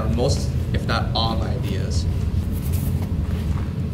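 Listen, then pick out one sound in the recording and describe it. A notebook's paper pages rustle as a hand opens it.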